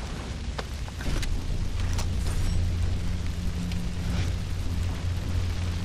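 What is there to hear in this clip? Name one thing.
A vehicle engine rumbles steadily nearby.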